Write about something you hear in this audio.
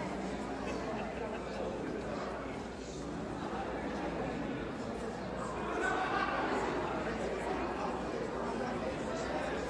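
A crowd of people chatters in a large room.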